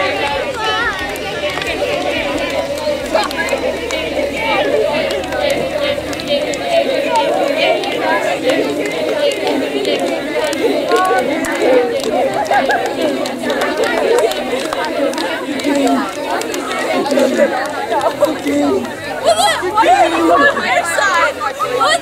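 A crowd of young women and girls chatter and call out all around, outdoors.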